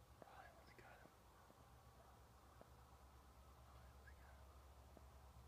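Birds call out over open water.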